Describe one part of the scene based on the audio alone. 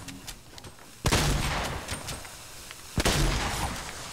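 Game gunshots crack in quick bursts.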